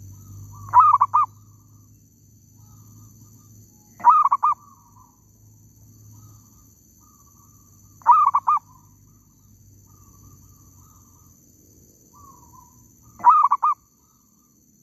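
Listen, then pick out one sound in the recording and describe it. A bird calls in short, loud bursts of quick notes every few seconds.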